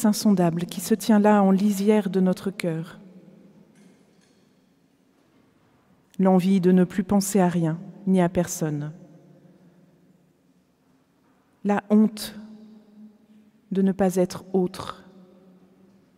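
A woman speaks calmly into a microphone in a large echoing hall, pausing between phrases.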